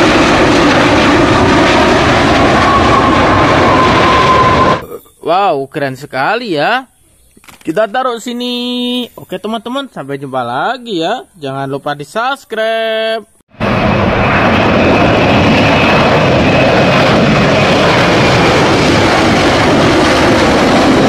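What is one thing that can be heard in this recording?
A jet airliner's engines roar loudly as it speeds down a runway.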